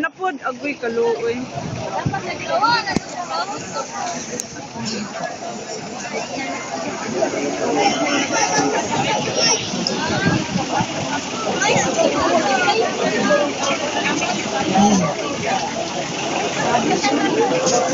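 A large crowd of men and women chatters and shouts outdoors.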